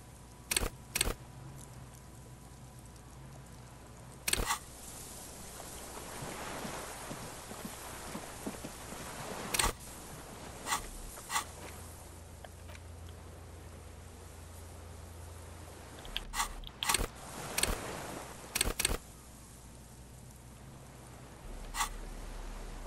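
Short interface clicks sound as menu pages switch.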